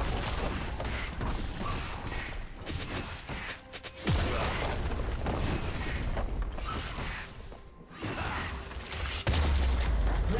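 Spell blasts and weapon strikes clash in a fight.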